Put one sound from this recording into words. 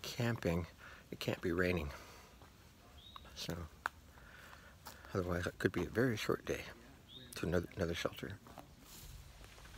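An elderly man talks calmly, close to the microphone.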